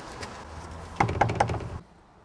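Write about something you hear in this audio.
A man knocks firmly on a wooden door.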